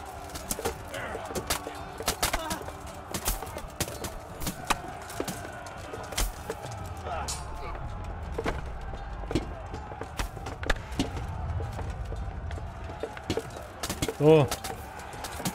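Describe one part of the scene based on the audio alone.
Men shout and grunt while fighting.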